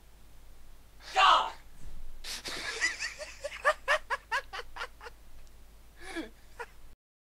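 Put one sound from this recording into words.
Wet splats burst out several times.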